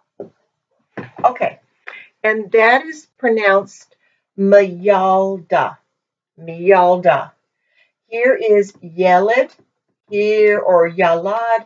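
A woman speaks clearly and calmly, close by, as if teaching.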